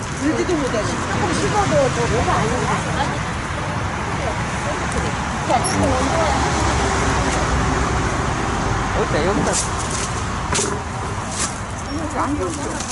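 Elderly women chat with each other close by.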